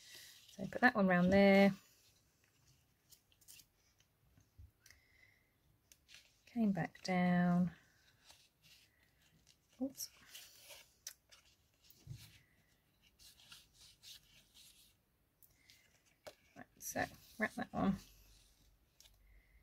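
Paper rustles and crinkles under hands.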